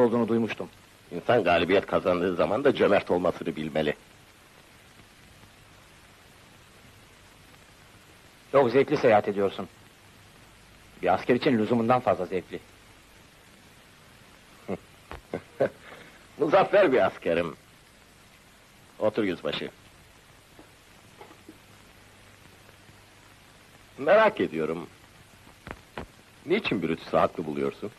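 A man speaks forcefully, close by.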